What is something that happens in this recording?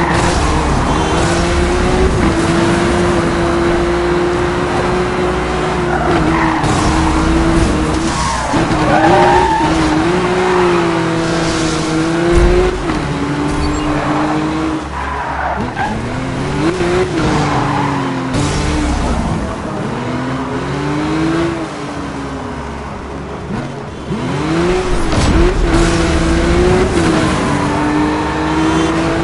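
A car engine roars loudly, rising and falling in pitch as it revs through the gears.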